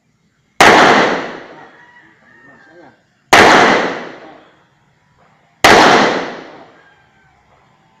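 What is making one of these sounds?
A pistol fires three loud shots outdoors, each echoing away.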